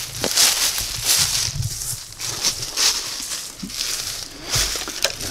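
Wind blows over the microphone.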